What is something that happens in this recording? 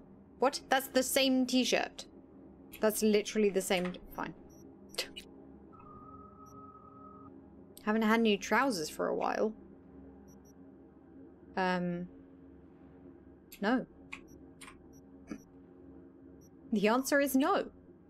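A young woman talks casually and with animation into a close microphone.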